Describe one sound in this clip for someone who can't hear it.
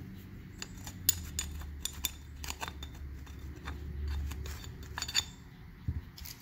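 A small brush scrapes and taps against a metal part.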